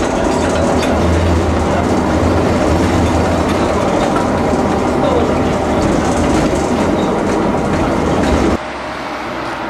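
A tram rumbles and rattles loudly along its tracks.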